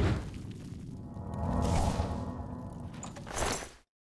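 A magic spell shimmers and hums as it is cast.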